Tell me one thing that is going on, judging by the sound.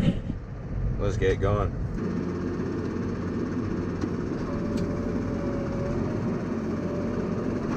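A tractor engine rumbles steadily inside the cab.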